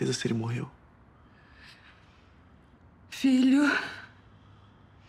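A middle-aged woman speaks tearfully in short, broken phrases close by.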